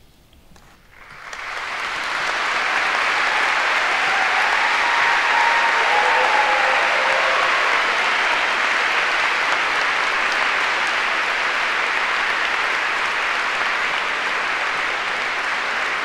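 A large crowd applauds loudly and steadily.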